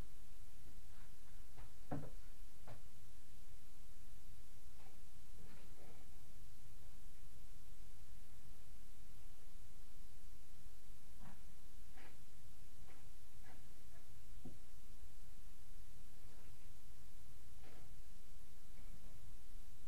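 Small objects knock and tap faintly on a hard surface nearby.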